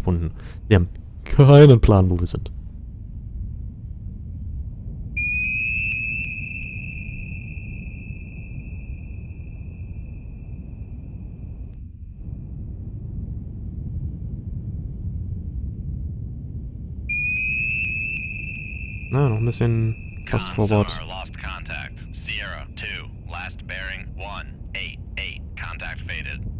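A submarine's engine rumbles low and steadily underwater.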